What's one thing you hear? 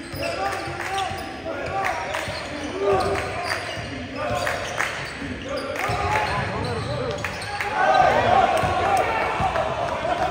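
Players shout and call out across an echoing gym.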